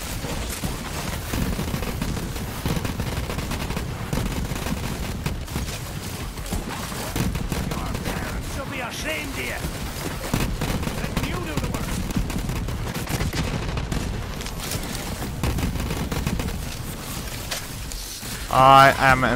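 Video game shotgun blasts boom in quick bursts.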